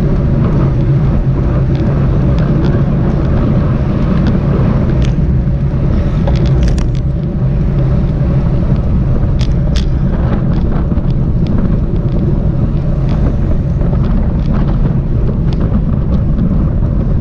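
Bicycle tyres hum on the road.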